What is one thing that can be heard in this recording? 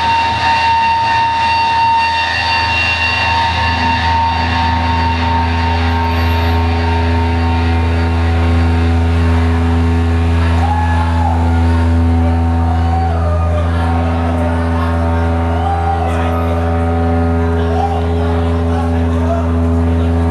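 A drum kit is played.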